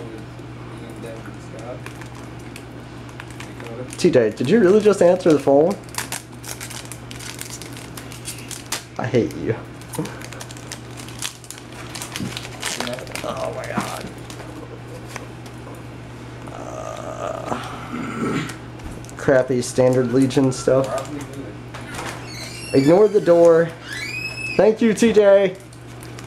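A foil wrapper tears open.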